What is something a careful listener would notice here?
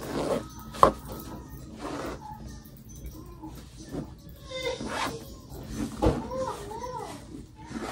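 A zipper is pulled on a bag.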